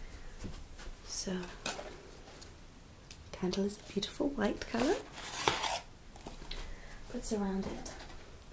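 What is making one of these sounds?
A young woman speaks softly and close.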